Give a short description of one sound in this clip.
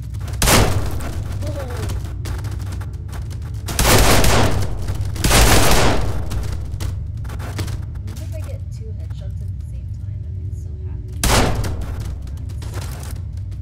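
Bodies thud and clatter as they topple over one after another.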